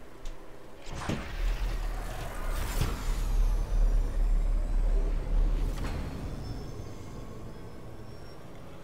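A spacecraft's engine roars overhead.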